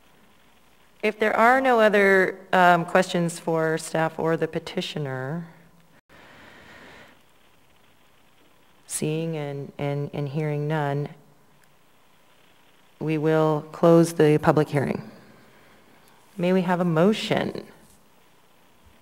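A young woman speaks calmly into a microphone, in bursts with pauses.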